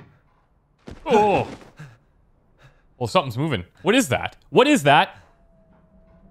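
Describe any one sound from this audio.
A man groans and cries out in pain.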